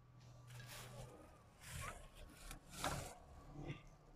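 Plastic bags rustle and crinkle as they are lifted.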